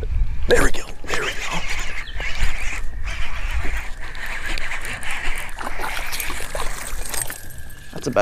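A fishing reel clicks and whirs as the line is wound in.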